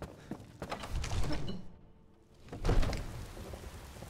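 A heavy wooden door creaks open and thuds.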